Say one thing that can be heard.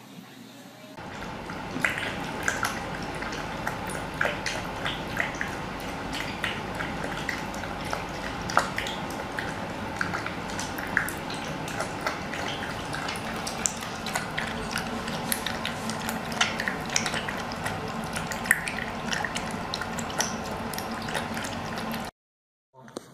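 A piglet slurps and smacks as it eats from a bowl.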